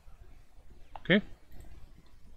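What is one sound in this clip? A short electronic blip sounds as a game menu closes.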